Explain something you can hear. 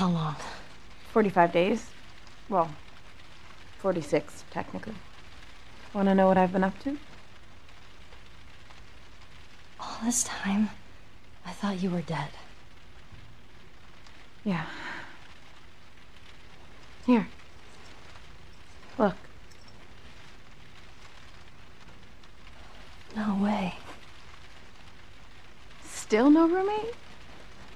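A young woman speaks quietly and hesitantly nearby.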